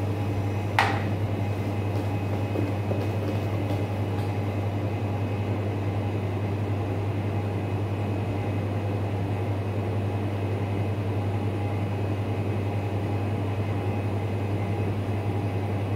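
An extractor fan hums steadily.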